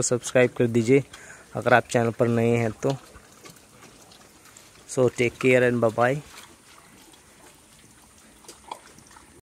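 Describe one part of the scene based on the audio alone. Pigs slurp and munch feed from a trough.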